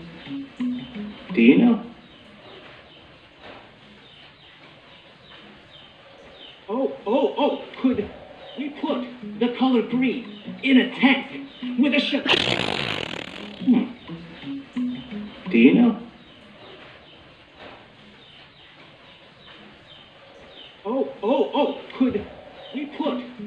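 A young man speaks with animation, heard through a small loudspeaker in the room.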